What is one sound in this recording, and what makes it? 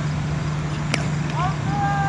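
A cricket bat strikes a ball with a sharp crack.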